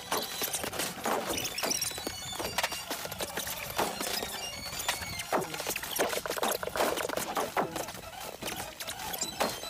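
Punches and kicks land with sharp thuds in a fight.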